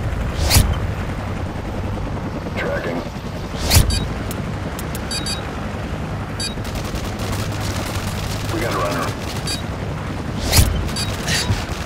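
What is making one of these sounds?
Heavy cannon shots boom and explode at intervals.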